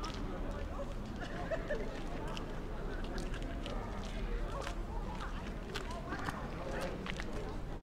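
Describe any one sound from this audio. Footsteps tap on pavement nearby.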